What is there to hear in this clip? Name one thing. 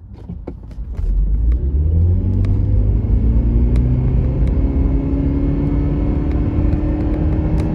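A car engine hums and rises steadily in pitch as the car speeds up.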